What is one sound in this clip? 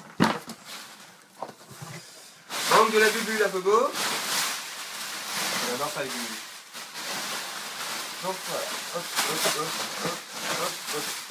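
Plastic packing material rustles and crinkles as it is pulled from a box.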